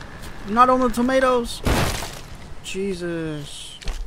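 A tree creaks and crashes to the ground.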